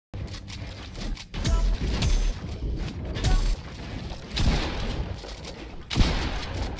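Wooden walls and ramps are built with quick clattering thuds.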